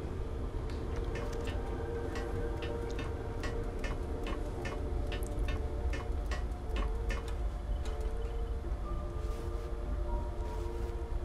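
Footsteps clank on metal ladder rungs in a steady rhythm.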